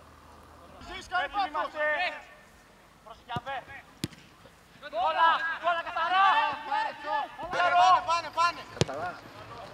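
Young men shout to each other outdoors on a football pitch.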